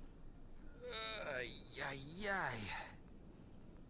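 A young man speaks in a strained voice.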